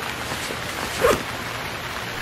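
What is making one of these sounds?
An axe chops sharply into a plant.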